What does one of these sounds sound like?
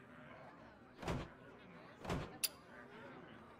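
Game menu buttons click.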